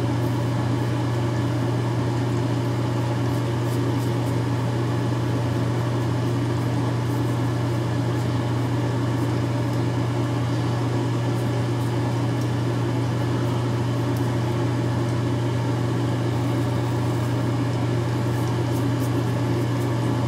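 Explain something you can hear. An electric trimmer buzzes steadily close by.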